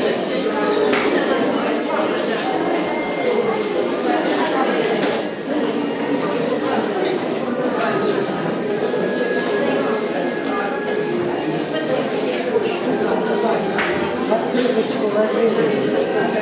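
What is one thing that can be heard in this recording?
A crowd of elderly men and women chatter at once in a busy room.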